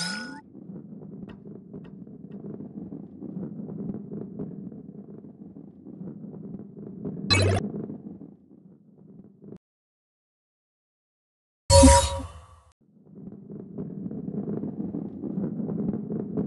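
A heavy ball rolls with a low, steady rumble across a wooden track.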